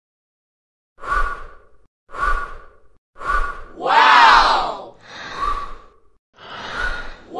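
A cartoon character blows short, hard puffs of air.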